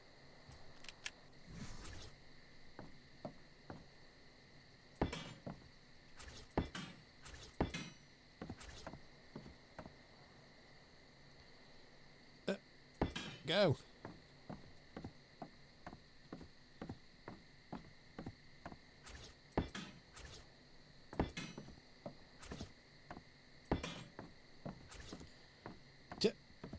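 Short clicks and thuds sound again and again as building pieces are knocked down.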